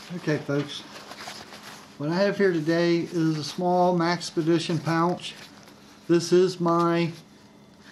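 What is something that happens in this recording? Hands rustle and shift a fabric pouch.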